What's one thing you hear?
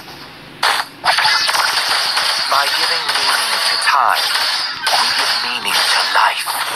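Magic blasts whoosh and crackle during a fight in a video game.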